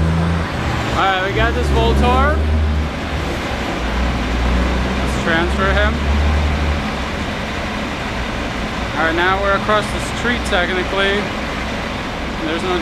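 A young man talks close to the microphone in a calm voice.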